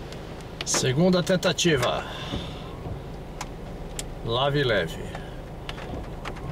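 Rain patters lightly on a car windscreen.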